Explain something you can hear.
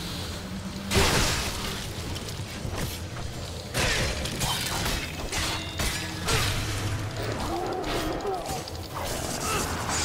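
A chainsaw blade slashes and tears through enemies with loud bursts.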